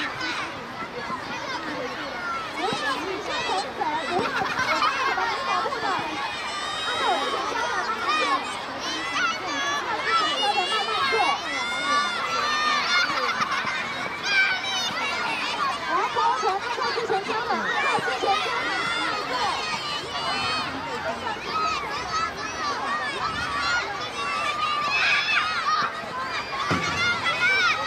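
A crowd of children cheers and shouts excitedly outdoors.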